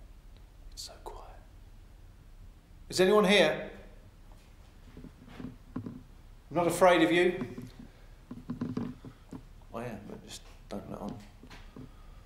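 A man speaks quietly and close by, in short bursts with pauses.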